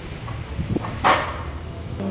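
A metal sled clanks to a stop nearby.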